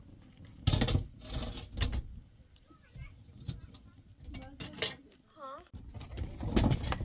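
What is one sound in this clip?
A metal griddle clanks against stone.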